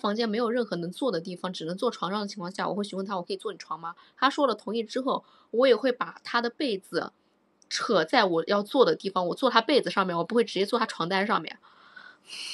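A young woman talks close to a microphone, with animation.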